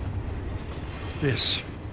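A middle-aged man speaks briefly in a low voice.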